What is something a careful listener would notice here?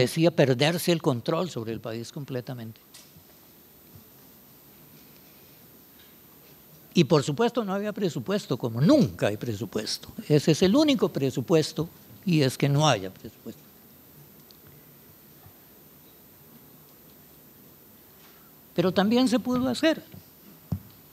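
An elderly man speaks calmly into a microphone in a large hall, with pauses between phrases.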